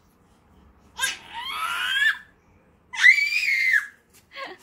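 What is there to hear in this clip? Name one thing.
A baby laughs and squeals with delight.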